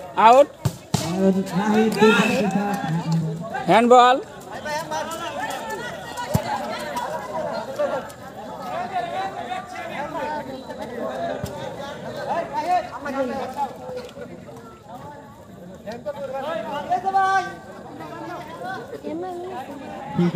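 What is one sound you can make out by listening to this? Young men shout and call out to each other outdoors.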